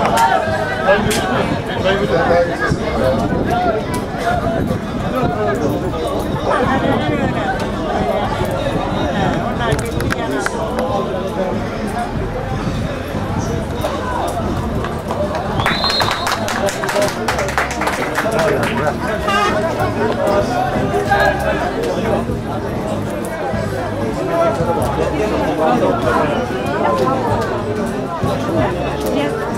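Men's voices chatter and shout nearby throughout, outdoors.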